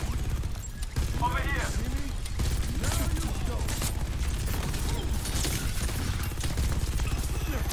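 Guns fire in rapid, rattling bursts.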